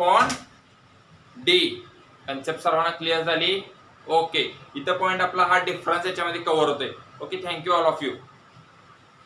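A young man explains with animation, speaking close by.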